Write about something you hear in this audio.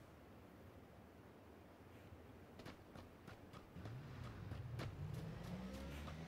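Footsteps crunch quickly over grass and rocky ground.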